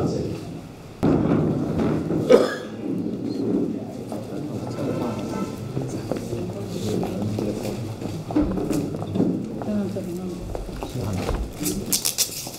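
Voices murmur in a crowded room.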